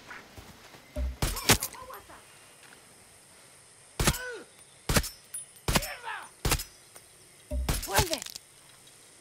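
Gunshots bang sharply, one after another.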